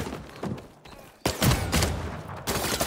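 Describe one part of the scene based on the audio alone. An assault rifle fires a burst.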